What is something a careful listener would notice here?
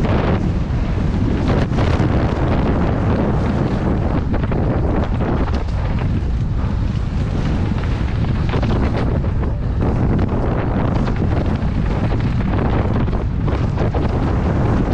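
Strong wind rushes and buffets loudly past a rider moving fast.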